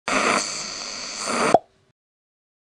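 A radio crackles and hisses with static, then cuts off sharply.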